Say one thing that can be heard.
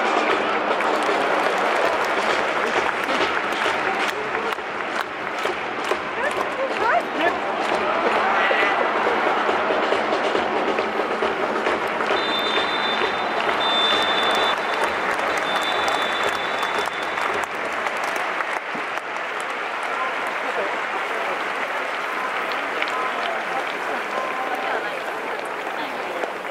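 A large stadium crowd murmurs and cheers outdoors.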